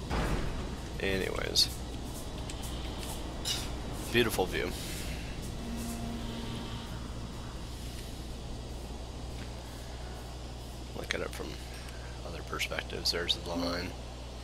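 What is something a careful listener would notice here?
A man talks calmly into a nearby microphone, in short bursts.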